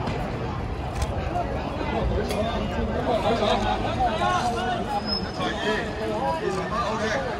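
A crowd of people talks and shouts outdoors at a distance.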